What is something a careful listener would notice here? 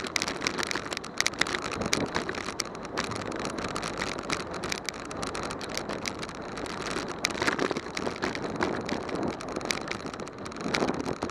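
A bicycle rattles and clicks over a bumpy road.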